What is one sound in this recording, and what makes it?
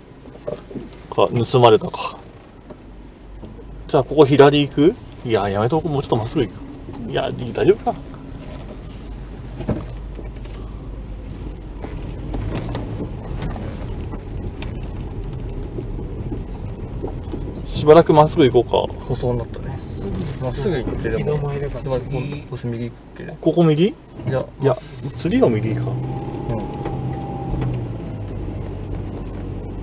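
A car engine hums softly as the car drives slowly.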